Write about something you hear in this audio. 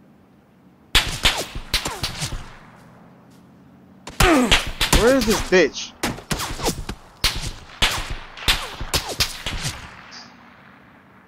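Gunshots crack in quick bursts nearby.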